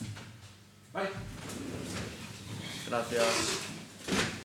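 A chair shifts and clothing rustles as a man gets up.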